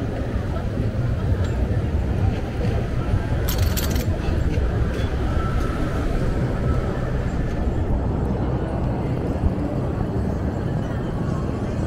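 City traffic hums and rumbles steadily outdoors.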